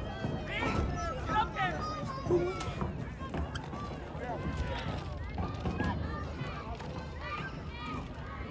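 Men and boys shout nearby on an open field.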